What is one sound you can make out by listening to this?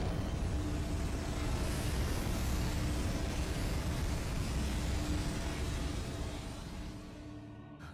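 A huge machine rumbles deeply and fades toward the end.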